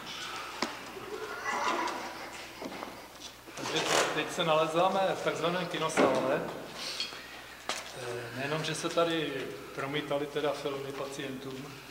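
A man talks calmly nearby in a large echoing room.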